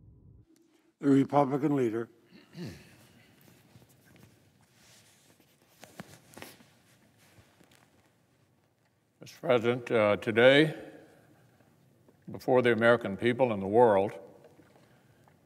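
Another elderly man speaks slowly and firmly into a microphone.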